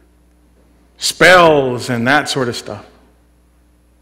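A man speaks loudly and with animation through a microphone, in an echoing hall.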